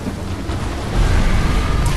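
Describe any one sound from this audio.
A burst of fire roars up close.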